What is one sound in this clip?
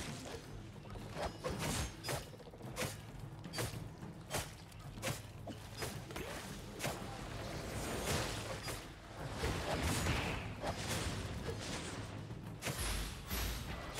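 Magic spells crackle and strike in quick, repeated bursts.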